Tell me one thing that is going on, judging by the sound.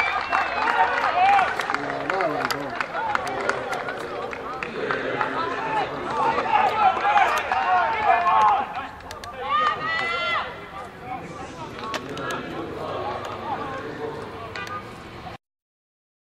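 Young men shout and cheer with excitement outdoors.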